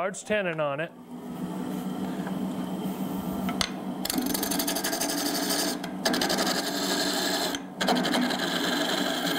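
A cutting tool scrapes against spinning wood.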